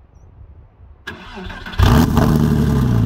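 A sports car engine starts up with a loud roar.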